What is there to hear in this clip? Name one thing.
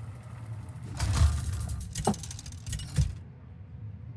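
A spinning game wheel whirs and ticks, then stops with a clunk.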